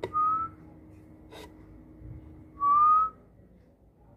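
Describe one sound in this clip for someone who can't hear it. A baby bird gives short, rising high-pitched peeps.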